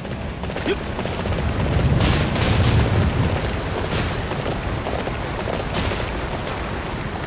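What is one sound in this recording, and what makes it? Hooves thud on soft ground as a horse gallops.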